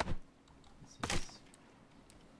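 A wooden stick snaps with a sharp crack.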